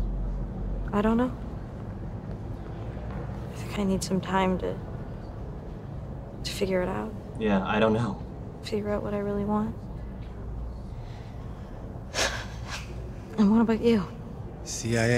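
A young woman answers quietly and hesitantly.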